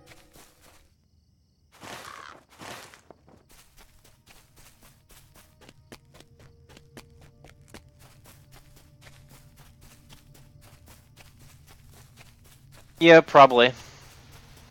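Quick footsteps patter steadily on the ground.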